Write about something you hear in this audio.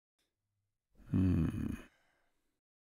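A second young man answers in a low, firm voice.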